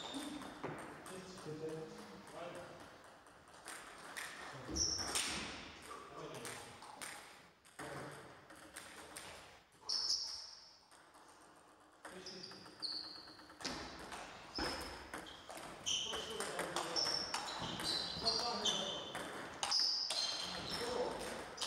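Table tennis balls click sharply off paddles and tables in a large echoing hall.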